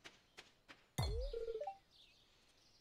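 A pickaxe clangs against a boulder.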